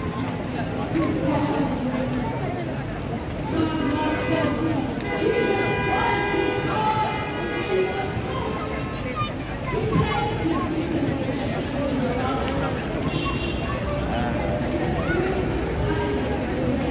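A busy crowd chatters outdoors all around.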